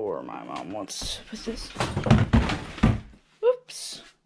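A plastic storage bin knocks and scrapes as it is moved.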